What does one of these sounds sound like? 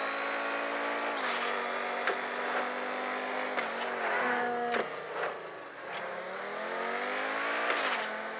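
A racing car engine roars at high revs, dropping in pitch at each gear shift and climbing again.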